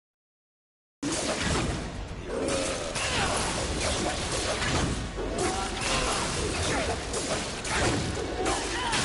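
Blades slash and strike with heavy impacts in a fight.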